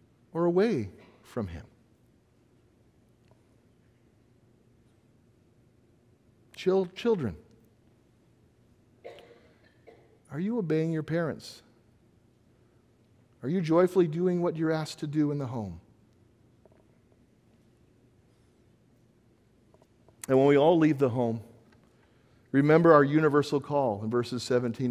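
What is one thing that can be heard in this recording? A middle-aged man speaks calmly into a microphone in a quiet hall, with long pauses.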